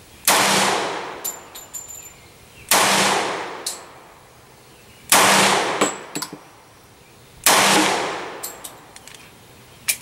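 Loud gunshots ring out one at a time and echo outdoors.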